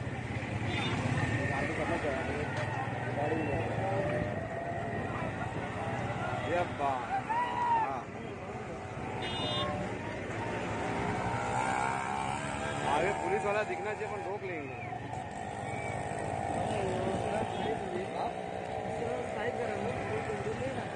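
Small engines of motor rickshaws and a scooter hum and putter close by in traffic.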